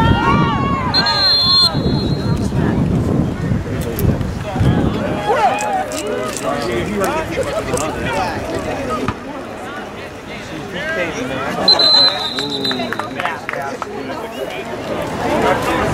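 A crowd of young people and adults shouts and cheers outdoors.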